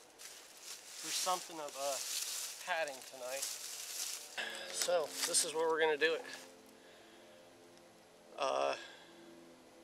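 A man speaks calmly and close by, outdoors.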